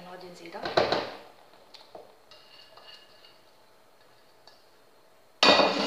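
A spatula scrapes grated onion off a plate into a metal bowl.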